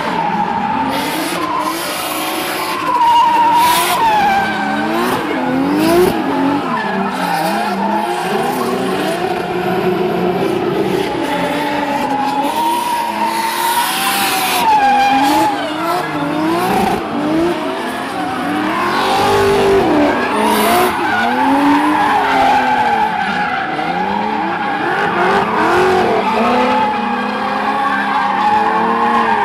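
Tyres screech on asphalt as drift cars slide.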